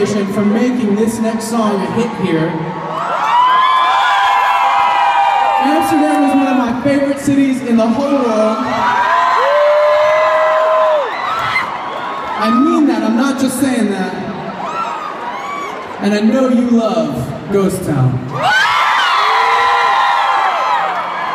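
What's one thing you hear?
A man sings loudly into a microphone over loudspeakers in a large echoing hall.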